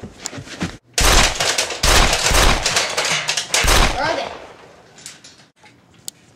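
A young boy talks loudly and excitedly close by.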